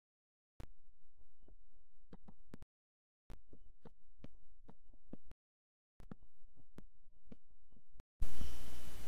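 Footsteps and soft knocks of wooden blocks being placed come in quick bursts.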